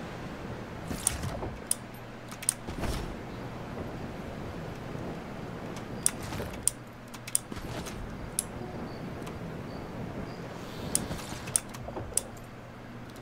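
Wings flap with sharp whooshes.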